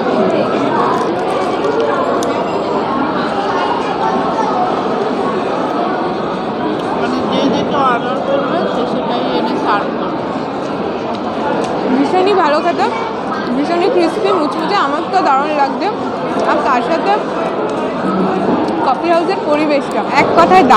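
A woman talks close by with animation.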